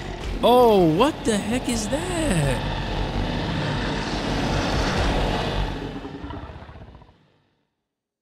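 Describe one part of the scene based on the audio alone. A creature roars and growls loudly.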